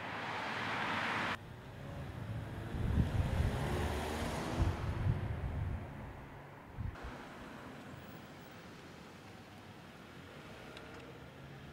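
Cars drive past on a road, tyres hissing on the tarmac.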